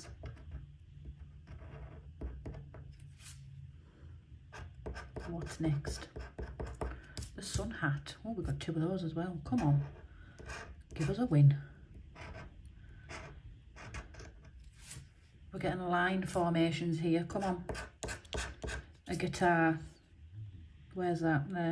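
A metal tool scratches and scrapes at a card in short strokes.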